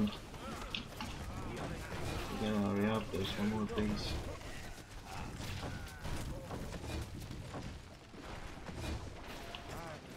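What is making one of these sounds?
Gunfire and clashing weapons crackle in a busy battle.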